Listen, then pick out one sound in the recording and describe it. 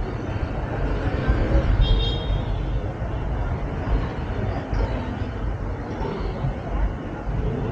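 A busy crowd murmurs and chatters nearby.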